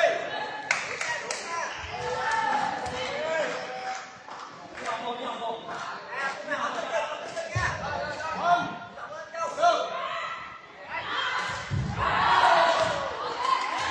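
Young men shout and call out with energy in a large echoing hall.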